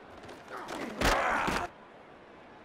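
Football players' pads crash together in a tackle.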